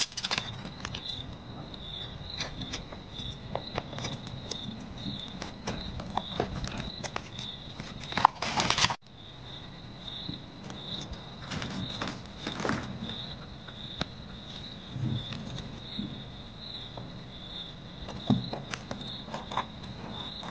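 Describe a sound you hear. Paper tape crackles as it is peeled and pressed down.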